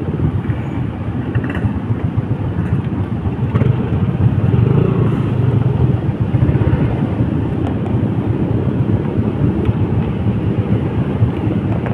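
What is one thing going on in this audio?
A wire rattles and scrapes against plastic.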